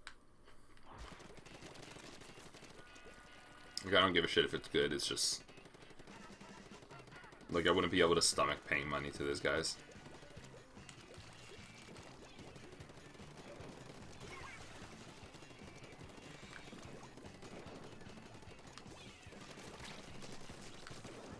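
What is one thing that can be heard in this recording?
Game sound effects of splattering and shooting play quietly.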